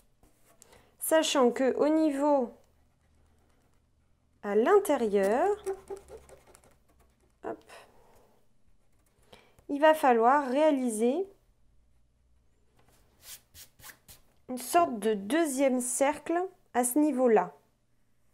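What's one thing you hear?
A woman speaks calmly close to a microphone.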